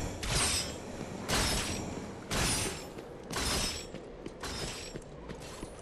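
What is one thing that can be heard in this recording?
Heavy metallic footsteps stomp at a steady, even pace.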